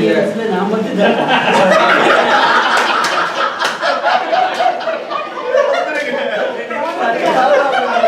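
A small crowd of men and women chatters and talks over one another.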